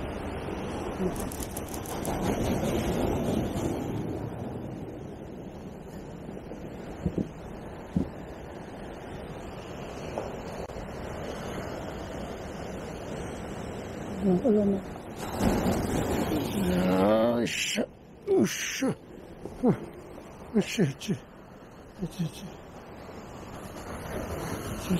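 Waves crash and wash over a rocky shore outdoors.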